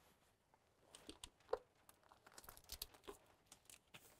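Hands rub and press wrap flat against a surface.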